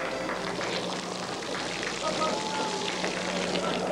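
Liquid pours and splashes from a bottle.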